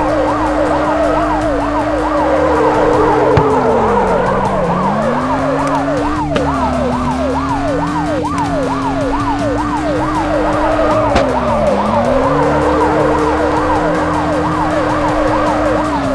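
A police siren wails in quick, repeating rising sweeps.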